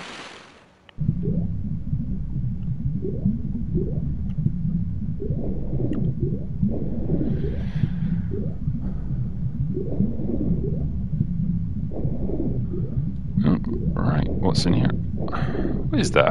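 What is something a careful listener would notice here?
Water churns and rumbles deeply underwater, with bubbles gurgling.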